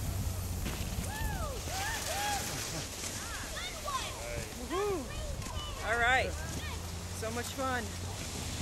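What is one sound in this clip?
A man whoops and shouts excitedly nearby.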